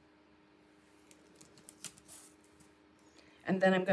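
Masking tape crinkles softly as it is pressed down by hand.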